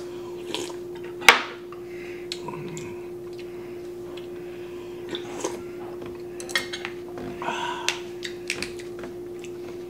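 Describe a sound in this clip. Utensils clink against dishes.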